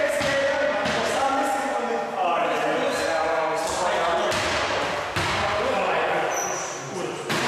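Sneakers squeak sharply on a wooden floor in an echoing hall.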